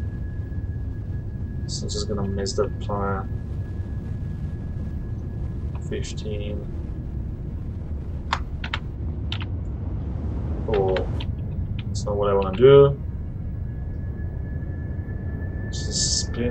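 A spacecraft engine rumbles steadily.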